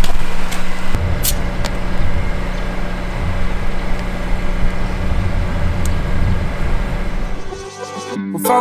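Air hisses from a hose into a tyre.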